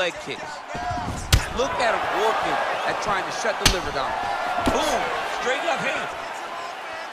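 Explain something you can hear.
A crowd cheers and roars in a large arena.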